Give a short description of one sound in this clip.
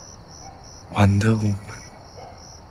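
A young man speaks briefly close by.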